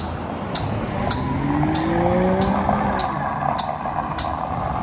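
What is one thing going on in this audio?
A car drives along a road.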